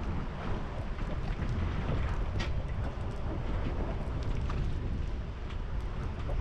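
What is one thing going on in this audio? Water splashes against the side of a boat.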